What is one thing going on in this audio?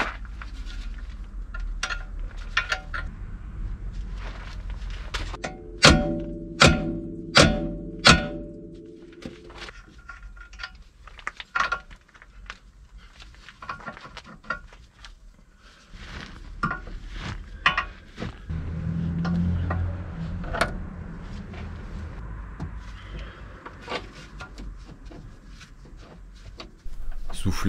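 Metal tools clink and tap against car parts.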